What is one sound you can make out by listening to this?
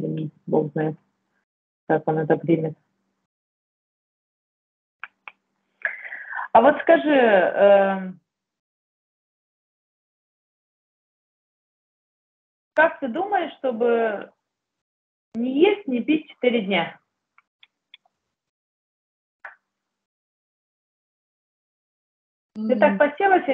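A woman speaks calmly in short bursts over an online call.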